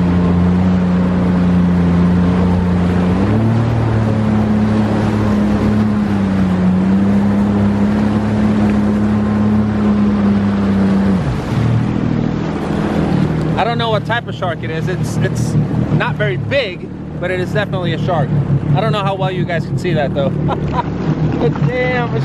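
Water rushes and splashes against a moving hull.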